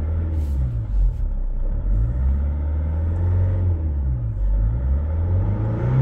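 A car engine revs briefly several times in quick bursts.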